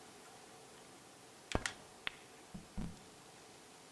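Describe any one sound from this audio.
Pool balls click against each other.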